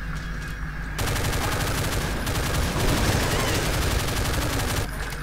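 A pistol fires in rapid bursts.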